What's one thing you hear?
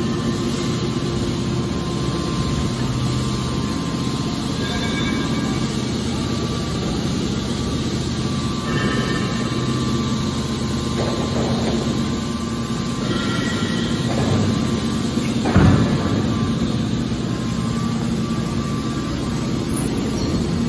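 A hydraulic machine hums and whines steadily.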